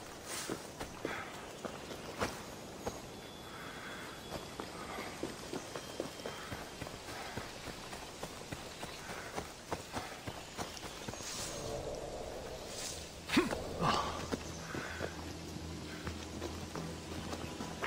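Footsteps crunch through dry grass and undergrowth.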